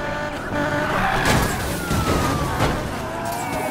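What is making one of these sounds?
A car crashes into a barrier with a loud bang.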